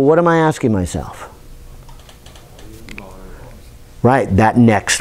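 A middle-aged man speaks with animation, with pauses between phrases.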